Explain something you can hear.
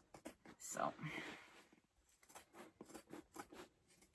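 Scissors snip through fabric.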